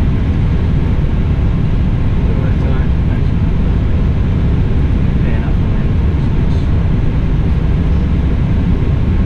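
Aircraft engines hum and rumble steadily.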